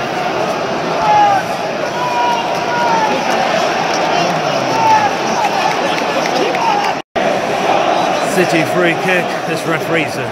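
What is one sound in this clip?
A stadium crowd chants and sings together.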